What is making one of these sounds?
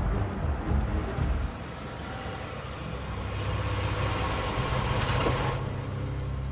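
A car engine hums as a car rolls slowly in.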